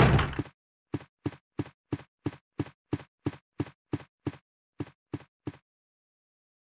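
Footsteps tread at an even pace on a hard floor.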